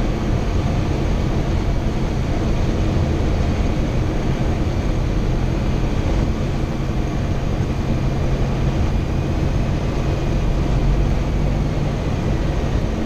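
Wind rushes past the cabin.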